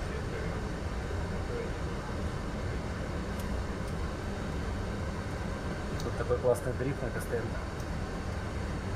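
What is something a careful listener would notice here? A steady low engine rumble drones.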